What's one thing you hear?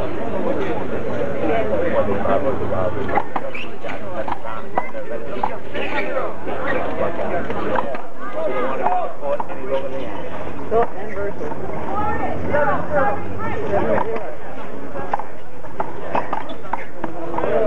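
Men talk and call out close by, outdoors.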